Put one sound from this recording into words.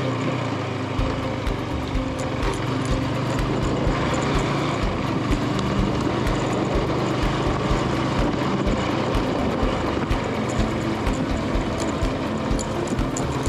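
Tyres rumble and thump over a rough dirt track.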